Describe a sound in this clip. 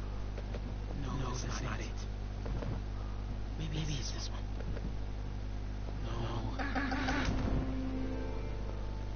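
A young man talks to himself in a low voice.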